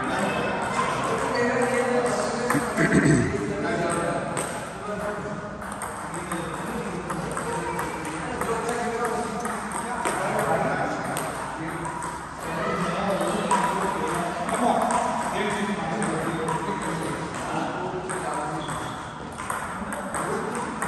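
Men and a woman talk with animation in a large echoing hall.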